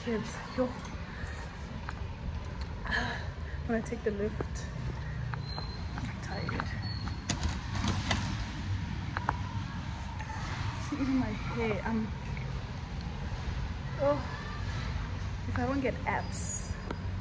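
A young woman talks casually and close up.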